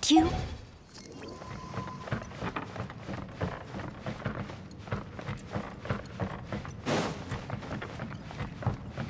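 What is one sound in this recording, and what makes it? Footsteps patter quickly across a wooden floor.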